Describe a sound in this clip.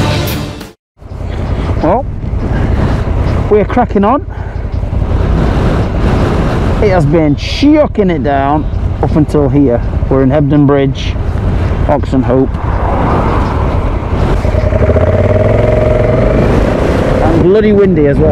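A motorcycle engine hums steadily as it rides.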